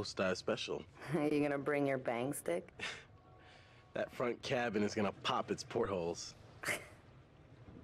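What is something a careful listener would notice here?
A young woman speaks playfully.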